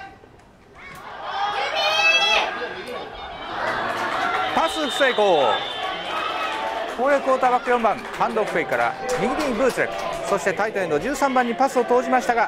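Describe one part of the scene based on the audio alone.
Young men shout and cheer across an open field.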